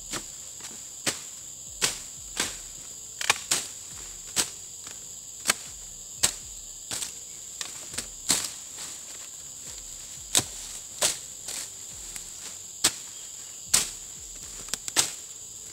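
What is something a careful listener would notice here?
A machete chops through branches and leaves in sharp, repeated strokes.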